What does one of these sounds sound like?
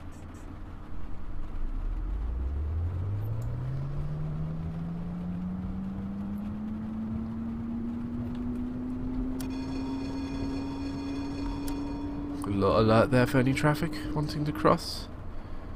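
A tram's electric motor whines, rising steadily in pitch as it speeds up.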